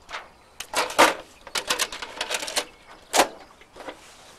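A microphone knocks and clicks as it is handled.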